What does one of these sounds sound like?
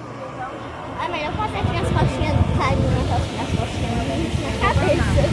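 Men and women chat nearby on a busy street outdoors.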